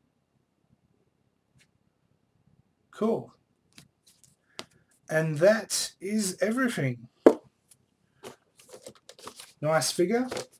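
Cardboard packaging rustles and taps in a man's hands.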